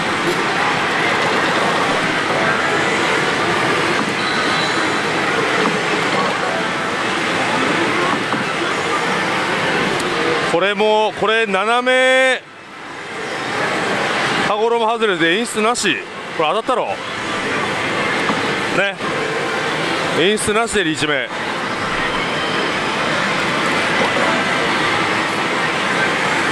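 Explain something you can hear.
A slot machine plays loud jingling music and effects.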